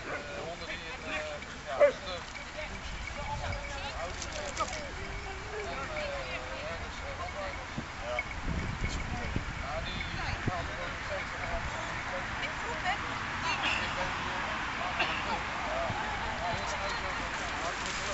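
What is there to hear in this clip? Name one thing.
Several people chatter in the distance.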